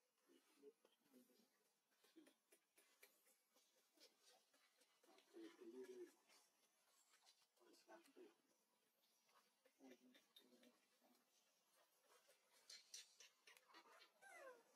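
A newborn monkey squeaks and whimpers softly close by.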